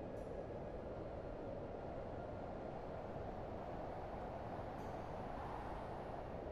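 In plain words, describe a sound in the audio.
Wind blows steadily.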